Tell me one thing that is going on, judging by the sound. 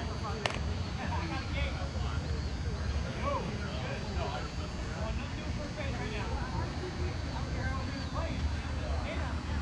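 Several men chat and call out outdoors at a distance.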